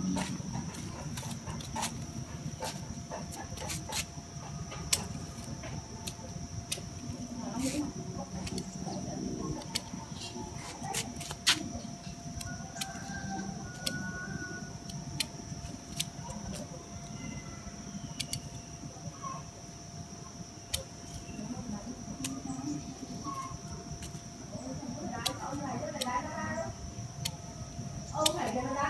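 Pruning shears snip sharply at leafy branches close by.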